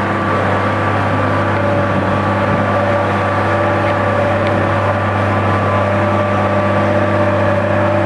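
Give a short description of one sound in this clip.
A road roller's diesel engine rumbles steadily nearby.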